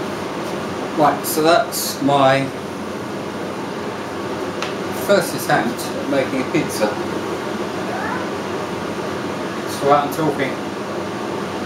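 An older man speaks close by, in short bursts.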